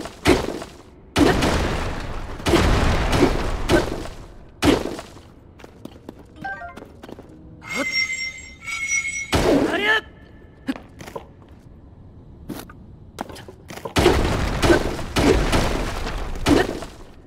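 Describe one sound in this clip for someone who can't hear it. A hammer strikes rock with loud crashing blows.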